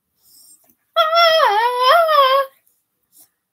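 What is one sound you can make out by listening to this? A young girl sings a few high notes close by.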